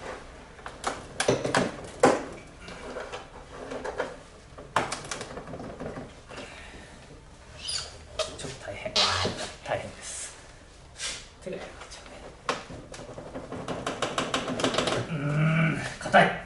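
Plastic parts click and knock under a man's hands.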